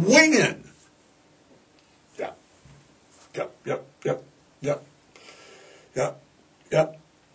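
An elderly man speaks slowly in short bursts into a close microphone.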